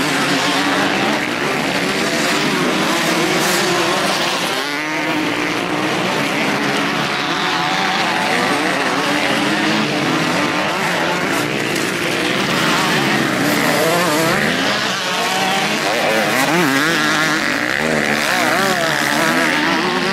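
Several dirt bike engines rev loudly, rising and falling in pitch.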